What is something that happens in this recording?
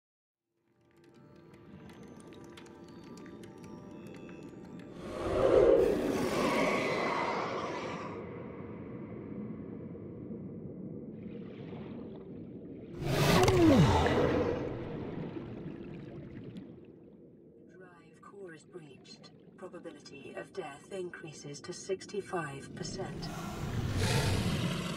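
Water rumbles and hums steadily underwater.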